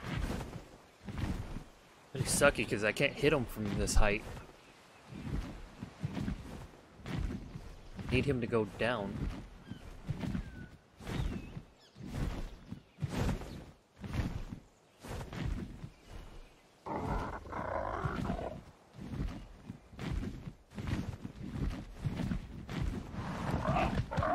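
Large wings flap in steady, rhythmic whooshes.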